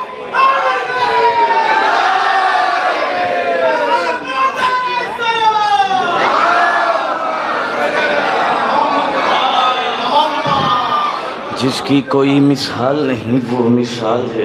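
A young man recites in a melodic, chanting voice through a microphone and loudspeakers.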